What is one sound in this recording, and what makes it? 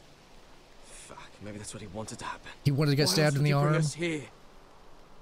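A man answers in a low, doubtful voice, close by.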